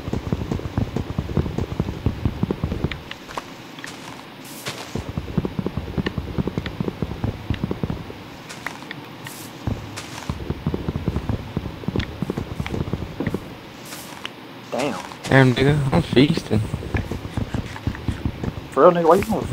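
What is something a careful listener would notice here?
Wooden blocks crunch and thud rapidly as they are broken.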